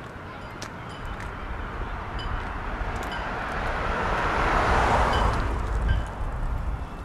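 A car approaches and passes by close, its tyres hissing on the road.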